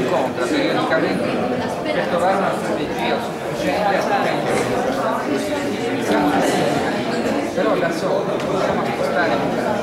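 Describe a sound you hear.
A crowd of men and women chatter close by.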